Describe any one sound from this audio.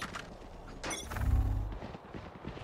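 A magical whoosh sounds as a spell is cast.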